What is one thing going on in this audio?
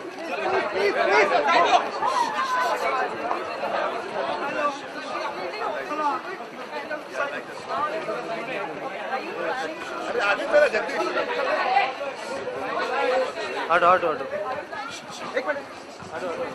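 A crowd chatters close by.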